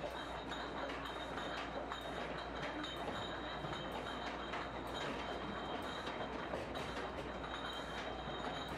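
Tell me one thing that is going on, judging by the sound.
A bottling machine whirs and hums steadily.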